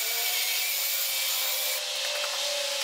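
A cordless drill whirs with a high, steady whine.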